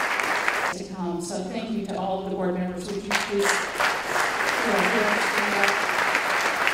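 An elderly woman speaks with feeling through a microphone.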